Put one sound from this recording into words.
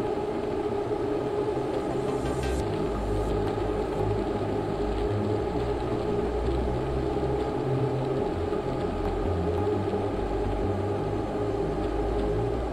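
An indoor bike trainer whirs steadily as a rider pedals.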